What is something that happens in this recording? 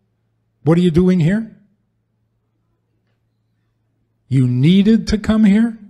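An elderly man speaks calmly into a microphone, pausing between phrases.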